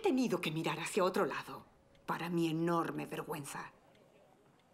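A middle-aged woman speaks calmly and warmly, close by.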